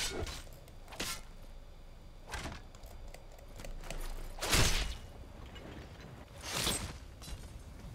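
Swords clash with sharp metallic hits.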